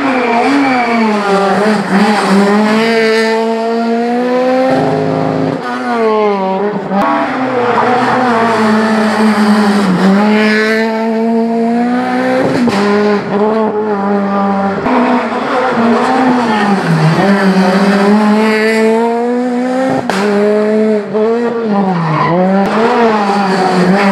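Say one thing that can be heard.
A rally car engine revs hard and roars past close by.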